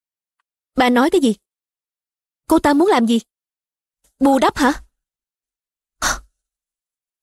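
A young woman speaks in short, upset phrases.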